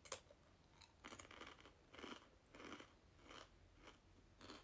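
A young woman crunches on a crispy snack close to a microphone.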